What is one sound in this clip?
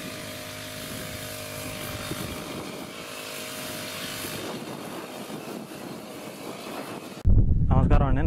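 A sprayer hisses as it sprays mist.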